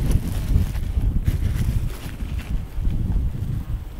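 A papery wasp nest crackles and rustles as it is torn away by hand.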